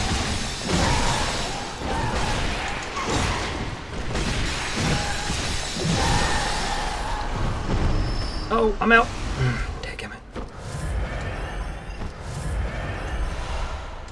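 Weapons clash and strike in a noisy fight.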